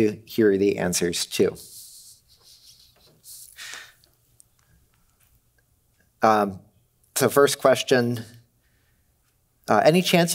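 A young man speaks calmly into a microphone in a large hall.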